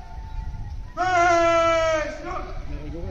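A man shouts a long, drawn-out parade command over a loudspeaker outdoors.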